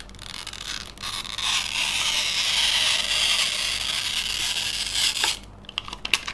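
Adhesive tape peels away with a long, crackling rip.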